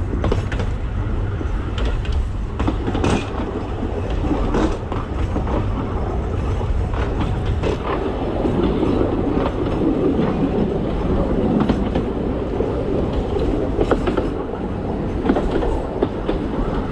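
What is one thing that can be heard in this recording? A small train rumbles steadily along a track.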